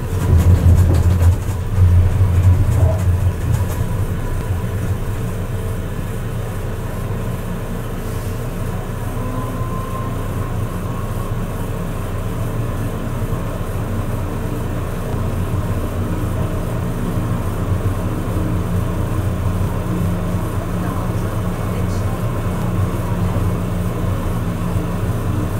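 A tram rumbles steadily along its rails, heard from inside.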